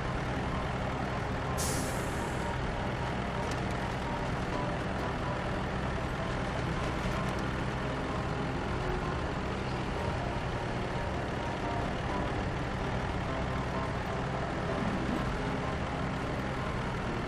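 A heavy truck engine rumbles steadily as the truck drives slowly.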